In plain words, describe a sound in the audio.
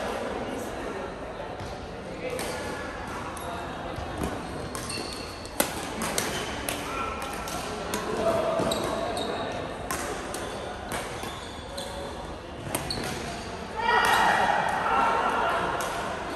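Badminton rackets smack shuttlecocks in sharp, quick pops.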